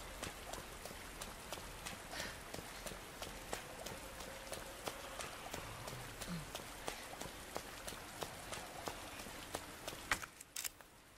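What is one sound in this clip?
Footsteps tap steadily on wet pavement.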